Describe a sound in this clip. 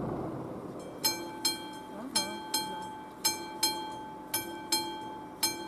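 A railway crossing bell rings in quick, steady strokes.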